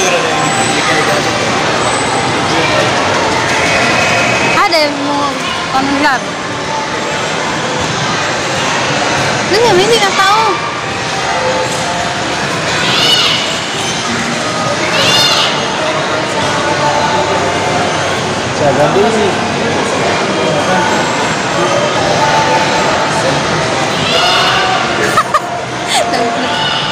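A crowd murmurs and chatters in a large, echoing hall.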